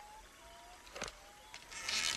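A revolver clicks as it is cocked.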